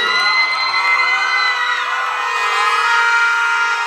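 A young woman cries out with joy.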